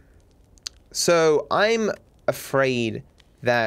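A young man speaks with animation into a microphone, close up.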